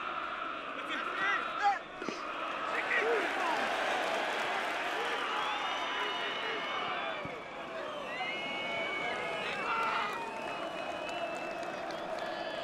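A large stadium crowd chants and cheers steadily.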